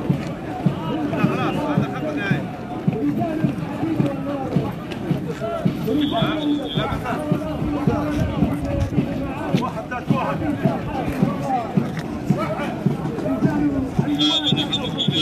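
A group of men chant loudly in unison while marching.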